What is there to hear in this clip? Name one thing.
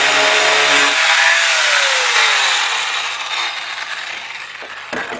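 An angle grinder's motor winds down and falls quiet.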